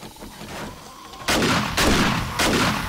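A rifle fires loudly in quick bursts.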